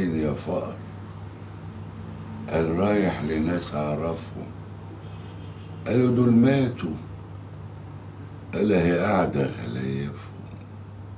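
A man speaks in a low, calm voice close by, with pauses between phrases.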